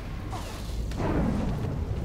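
An energy blast bursts with a crackling whoosh.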